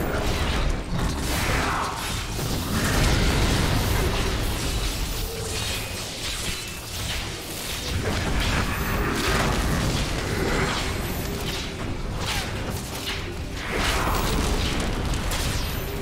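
Spells blast and crackle in a game battle, with deep rumbling booms.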